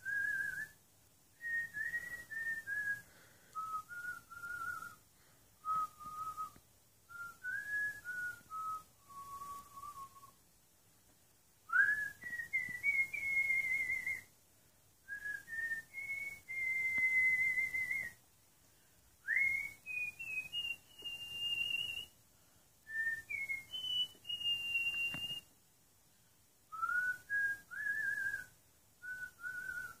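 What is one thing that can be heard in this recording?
An elderly woman whistles a slow tune close by, in short phrases with pauses.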